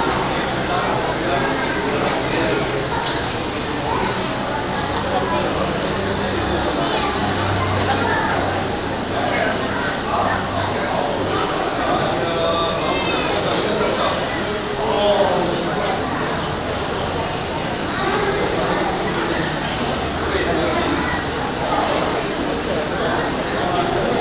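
A crowd of women and children chatter nearby.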